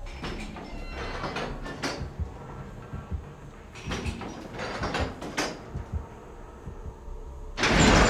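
Metal parts click and rattle as a panel is worked on.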